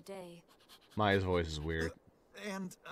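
A small dog yaps.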